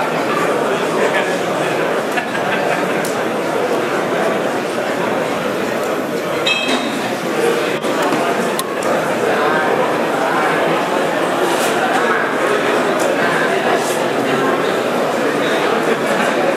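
A crowd chatters steadily in a large hall.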